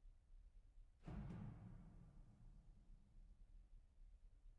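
A piano chord is struck and rings out, fading slowly.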